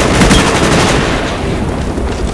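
Rapid gunshots ring out at close range.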